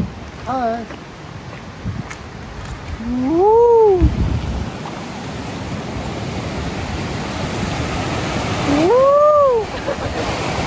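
A young man speaks with excitement and calls out in long drawn-out exclamations close by.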